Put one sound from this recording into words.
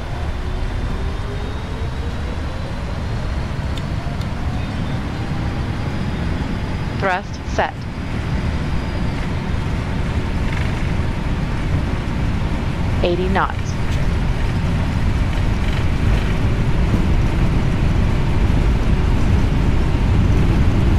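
Jet engines roar steadily and grow louder as an airliner speeds down a runway.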